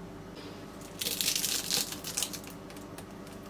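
Flaky pastry crunches as a knife cuts through it.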